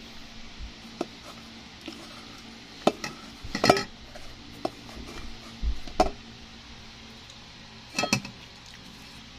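A plastic paddle knocks and scrapes against a plate.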